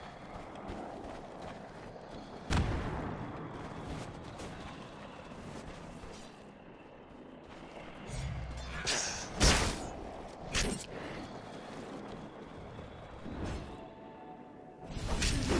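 Video game fighting effects whoosh and clash.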